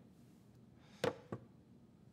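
A small object clicks down onto a wooden tray.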